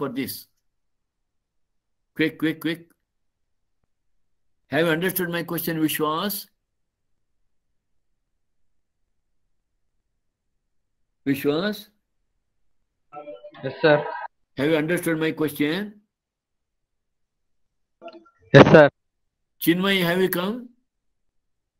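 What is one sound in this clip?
An elderly man speaks calmly in short phrases through an online call.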